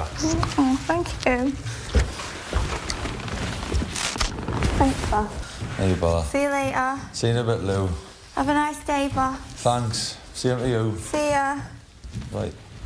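A young woman talks loudly and excitedly nearby.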